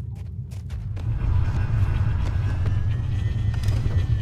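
A heavy vehicle engine rumbles loudly.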